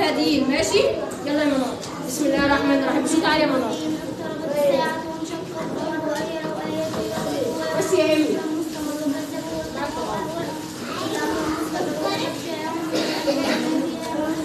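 A young girl recites clearly and loudly nearby in a small echoing room.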